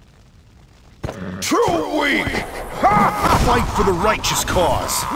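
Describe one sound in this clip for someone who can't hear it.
Game battle sound effects clash and boom loudly.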